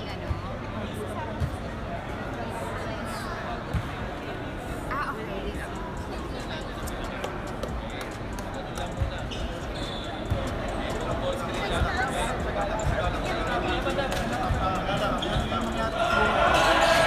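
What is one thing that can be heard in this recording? A middle-aged man talks to a team in a huddle.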